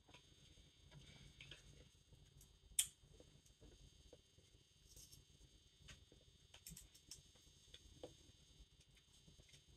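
Metal knitting needles click and tick softly, close by.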